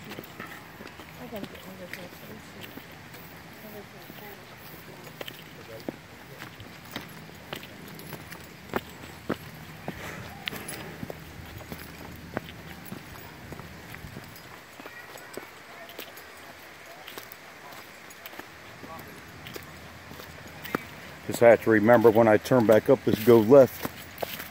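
Footsteps crunch on a dirt trail outdoors.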